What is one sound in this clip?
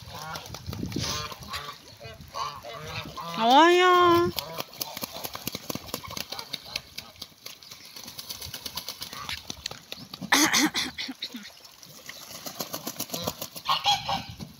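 Geese honk and cackle nearby outdoors.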